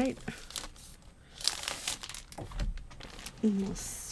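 A stiff sheet of paper rustles as it is handled.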